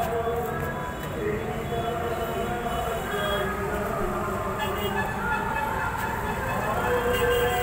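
A crowd of people chatter and talk all around, outdoors.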